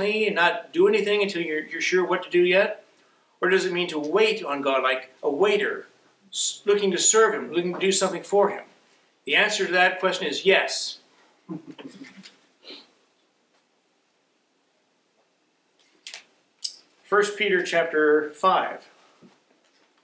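A middle-aged man speaks calmly and clearly into a microphone, with pauses.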